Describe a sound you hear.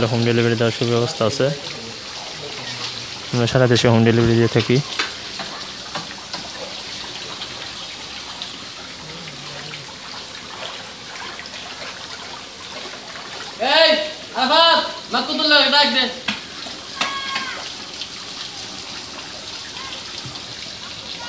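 Water sloshes and splashes as hands stir it.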